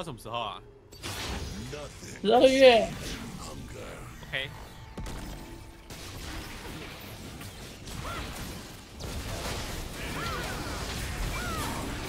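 Video game spell and combat effects whoosh and clash.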